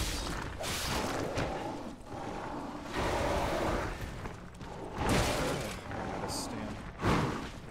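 A blade swishes and clangs.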